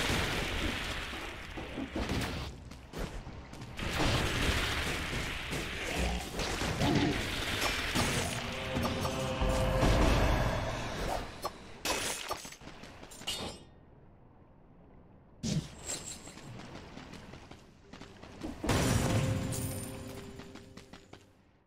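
Game sword slashes and hits clash in quick bursts.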